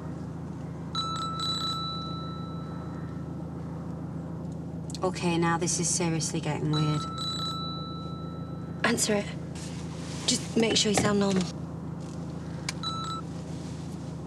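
A mobile phone rings in a car.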